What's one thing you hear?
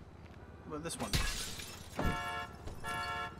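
A car door opens and thumps shut.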